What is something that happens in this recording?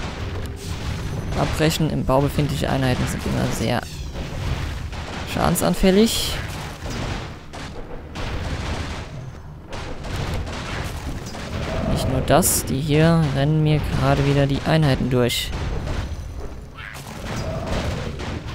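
Magic spells crackle and burst in a fantasy game.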